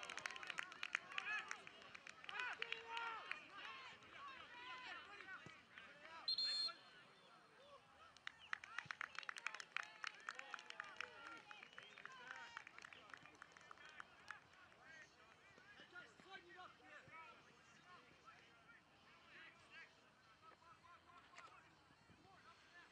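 Young men shout and call out across an open field.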